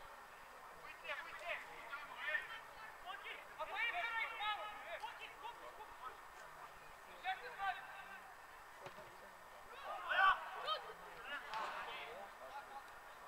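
Young male players shout and call to each other at a distance outdoors.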